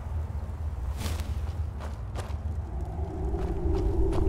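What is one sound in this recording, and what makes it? Footsteps crunch on a gravelly stone floor.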